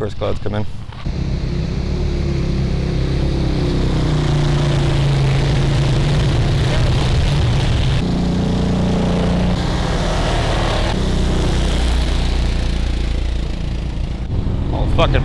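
A quad bike engine drones and revs as it drives past.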